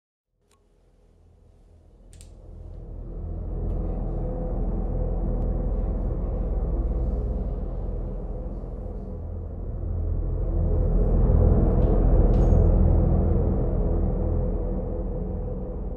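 A refrigerator hums with a steady low drone.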